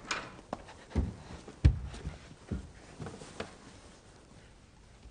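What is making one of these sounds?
Knocks sound on a wooden door.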